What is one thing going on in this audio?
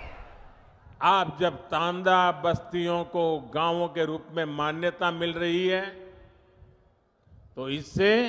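An elderly man speaks forcefully through a microphone and loudspeakers.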